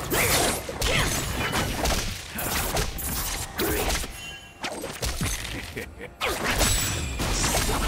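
Spells and weapons clash and burst in a fast game battle.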